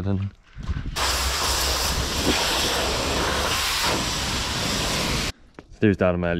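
A pressure washer sprays water with a loud, steady hiss.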